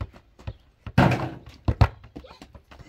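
A ball thumps as a boy kicks it on the dirt.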